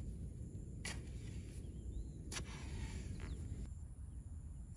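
A hoe digs into loose, wet soil with thuds and scrapes.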